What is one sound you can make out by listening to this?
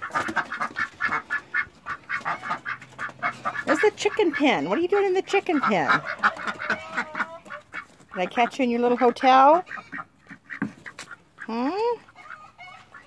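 Ducks quack rapidly and loudly close by.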